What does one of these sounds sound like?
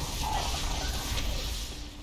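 A magical blast bursts with a bright whoosh.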